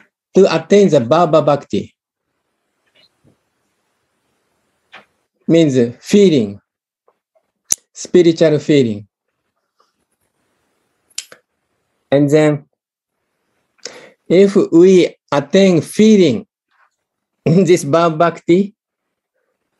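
A middle-aged man speaks with animation in short bursts over an online call.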